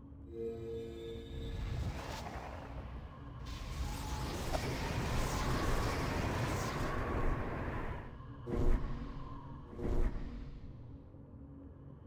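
Fire roars and hisses along the ground.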